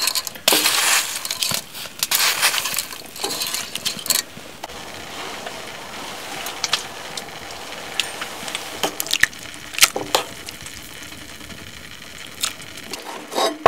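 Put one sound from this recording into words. Metal tongs clink against the side of a pot.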